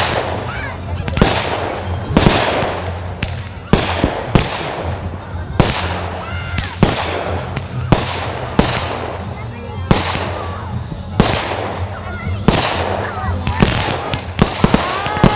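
Fireworks crackle and sizzle.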